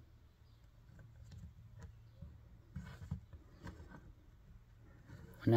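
Fingers turn and rub a small rough stone, with faint scratching.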